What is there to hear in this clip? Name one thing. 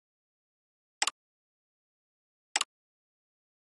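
Short menu clicks sound twice.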